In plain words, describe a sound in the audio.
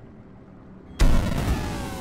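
A loud booming game sound effect bursts out and rings as gates open.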